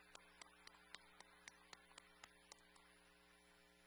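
A man claps his hands steadily, close by, then stops.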